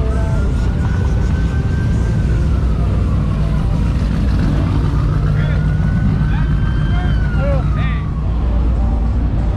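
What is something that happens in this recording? Car engines rumble loudly close by.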